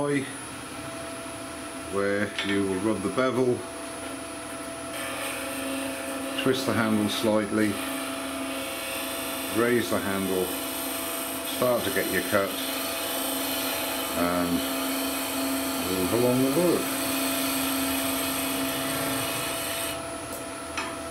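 A wood lathe spins with a steady motor hum.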